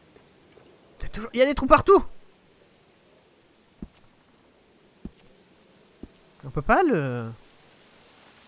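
A young man speaks close to a microphone, in short bursts.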